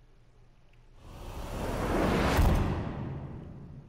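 A video game plays a loud whooshing burst that swells and then fades.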